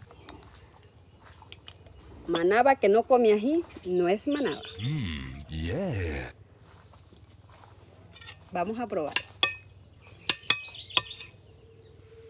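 A spoon clinks against a plate.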